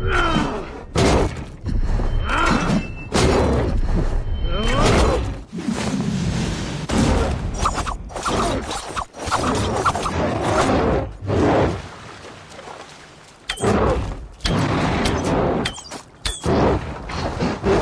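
Sword blows strike and thud in quick bursts.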